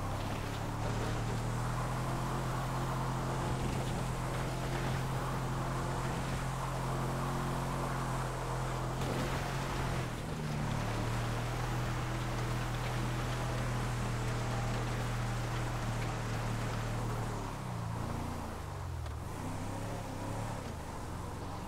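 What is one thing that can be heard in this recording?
An off-road vehicle's engine drones steadily, dipping briefly as it shifts.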